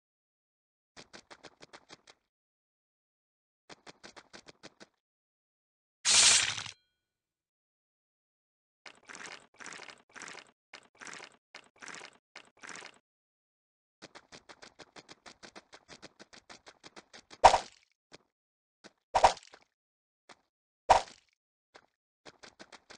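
Small running feet patter in quick light taps.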